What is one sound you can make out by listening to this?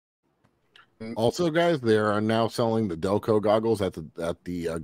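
A man speaks with animation through a headset microphone on an online call.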